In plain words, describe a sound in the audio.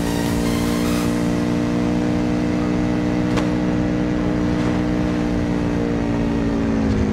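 A buggy engine drones steadily at high revs.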